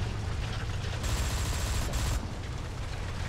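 Steam hisses loudly from a tank's engine deck.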